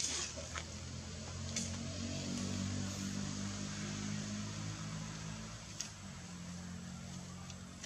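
Leaves and branches rustle as monkeys shift about in a tree.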